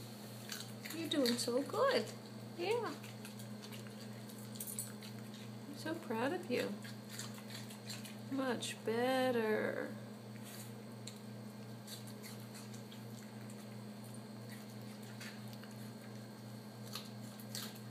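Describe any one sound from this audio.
A small dog licks and crunches food from a plastic tray.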